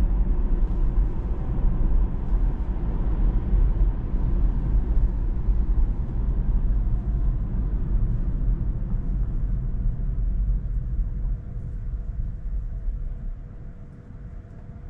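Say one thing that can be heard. Road and tyre noise rumbles inside a moving car, then quiets as the car slows to a stop.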